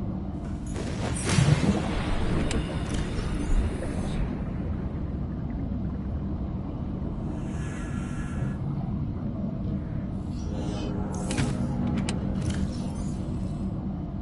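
Bubbles fizz and gurgle underwater.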